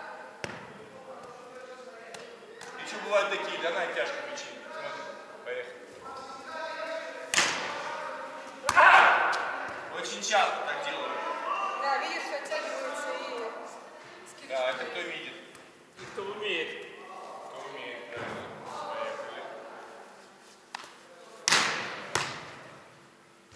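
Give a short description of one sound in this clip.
A young man talks loudly, echoing in a large hall.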